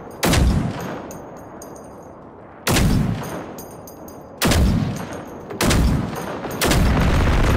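A rifle fires loud shots that boom and echo.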